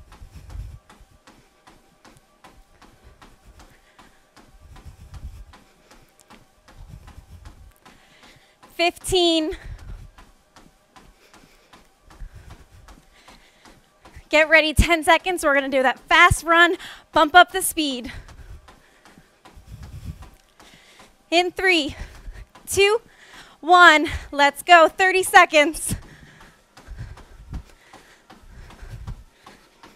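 Feet thud steadily on a running treadmill belt.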